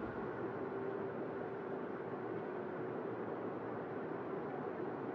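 Water rushes steadily along a ship's hull.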